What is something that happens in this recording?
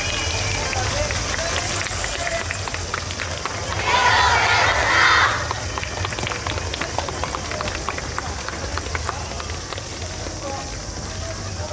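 Wooden clappers click sharply in quick rhythm.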